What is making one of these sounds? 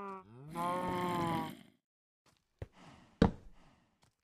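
A wooden post is set down with a short knock.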